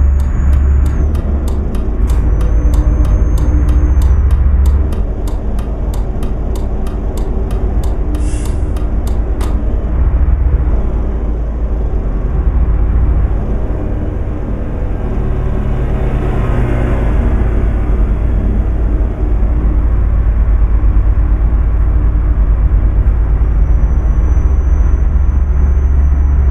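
Tyres hum steadily on the road.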